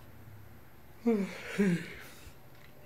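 A man yawns loudly with a groan.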